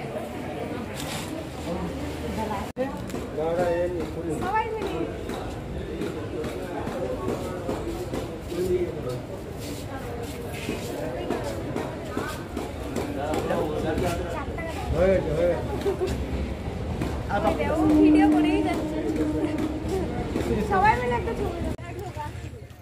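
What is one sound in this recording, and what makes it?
Several men and women chatter around the microphone outdoors.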